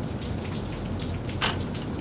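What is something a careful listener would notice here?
A plate clatters into a dish rack.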